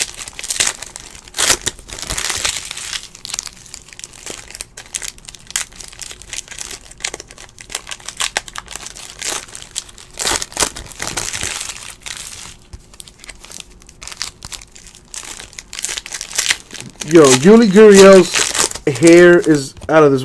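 Foil wrappers crinkle and tear as they are pulled open.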